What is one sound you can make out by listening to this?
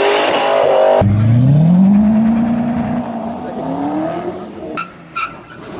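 A second car engine roars as it accelerates away.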